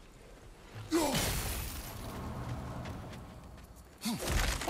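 A burst of energy erupts with a loud rushing whoosh that slowly fades.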